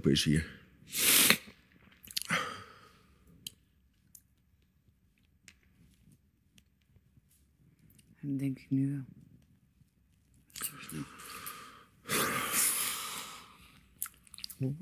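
A young man sighs and breathes heavily.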